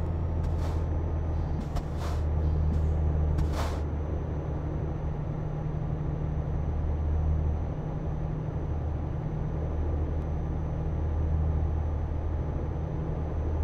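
A truck engine hums low and steady while driving.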